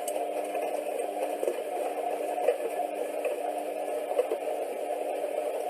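A washing machine drum turns with a steady hum.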